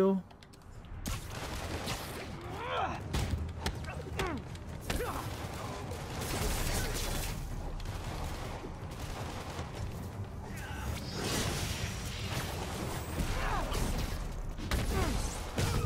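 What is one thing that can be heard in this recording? Blows and punches thud during a brawl.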